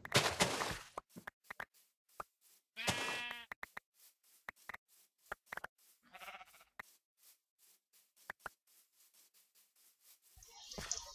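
Footsteps rustle through grass at a steady pace.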